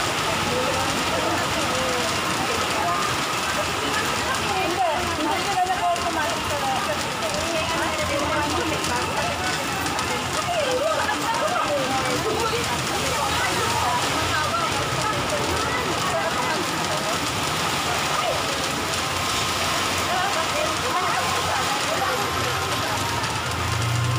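Several young women chat and laugh nearby.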